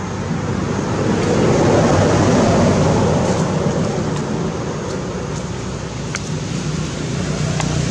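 Dry leaves rustle and crunch as a monkey walks over them.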